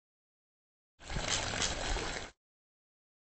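A water pistol squirts.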